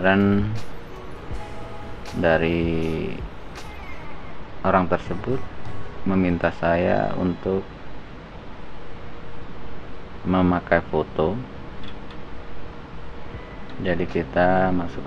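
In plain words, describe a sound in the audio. A man talks calmly into a microphone, close by, in short phrases.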